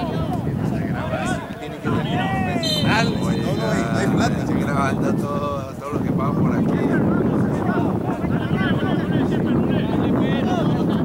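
Young men shout and call to each other across an open playing field.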